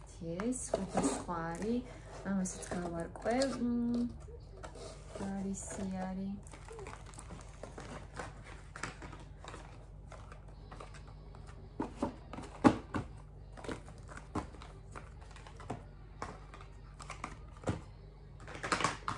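Plastic packaging and boxes rustle and clatter as they are handled.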